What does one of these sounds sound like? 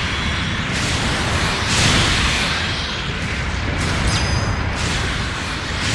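Electric beam blasts crackle and zap.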